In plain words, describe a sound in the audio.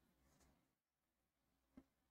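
A plastic ruler taps on paper.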